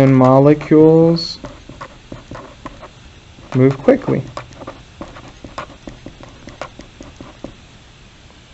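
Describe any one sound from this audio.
A marker scratches and squeaks on paper.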